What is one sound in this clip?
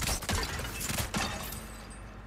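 A blade swishes and strikes.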